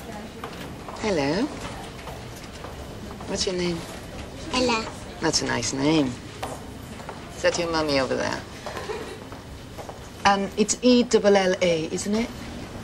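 A young girl speaks in a small, high voice.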